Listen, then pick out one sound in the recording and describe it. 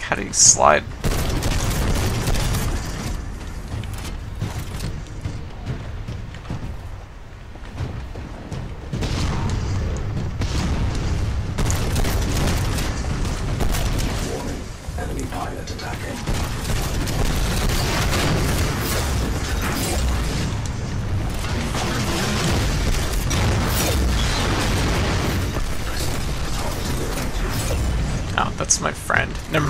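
Heavy gunfire rattles in rapid bursts.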